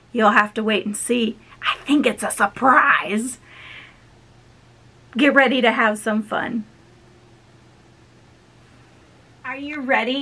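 A woman talks cheerfully close by.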